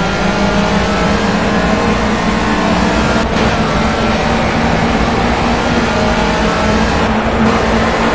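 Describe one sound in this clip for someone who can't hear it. Tyres hum on the track.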